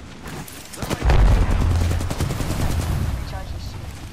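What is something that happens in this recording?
Gunshots fire in a rapid burst, with a deep boom.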